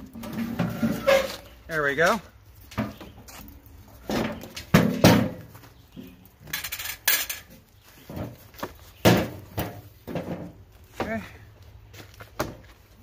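Metal parts clunk and rattle as they are handled.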